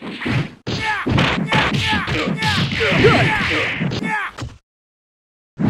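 A burst of rushing water blasts and splashes.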